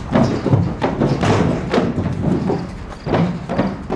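Horses' hooves thud and clatter on the ground.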